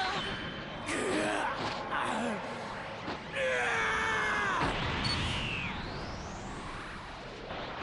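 A crackling energy blast roars and swells.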